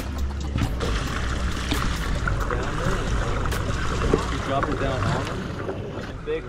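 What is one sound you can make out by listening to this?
Water sloshes and splashes in a tank.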